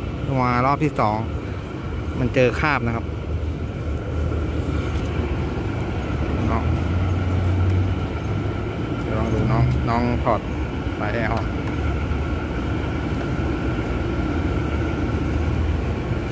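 A vacuum pump hums steadily nearby.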